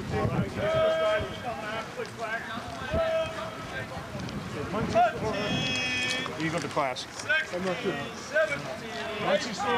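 Men talk and call out at a distance outdoors.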